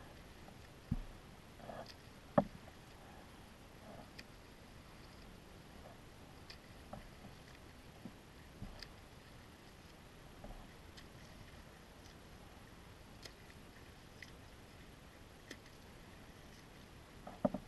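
A kayak paddle dips and splashes in calm water in a steady rhythm.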